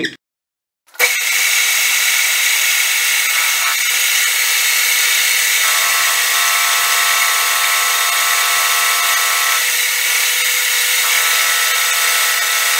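A cutting tool scrapes against spinning metal with a steady hiss.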